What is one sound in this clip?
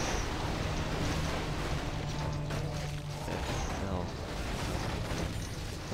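Swords clash and strike in a busy fantasy battle.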